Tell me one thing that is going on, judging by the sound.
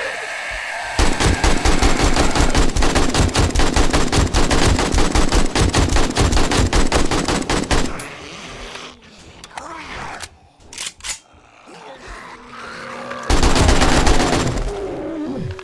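A rifle fires rapid automatic bursts.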